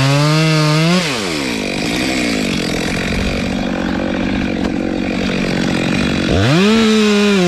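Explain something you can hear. A chainsaw engine idles with a low sputter.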